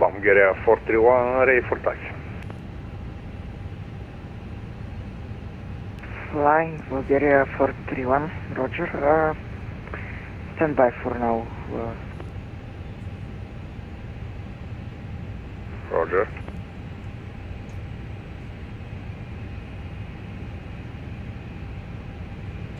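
Jet engines hum steadily at idle.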